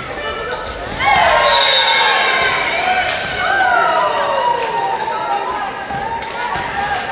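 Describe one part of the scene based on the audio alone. Spectators cheer and shout.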